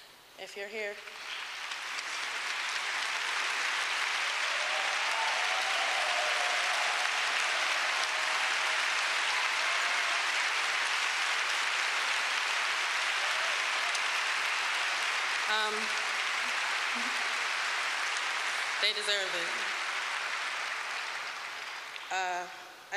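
A large crowd applauds loudly and steadily.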